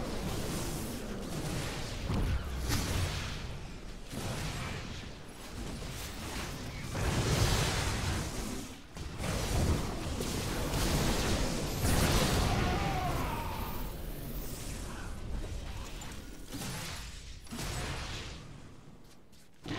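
Game weapons fire and energy blasts crackle in quick bursts.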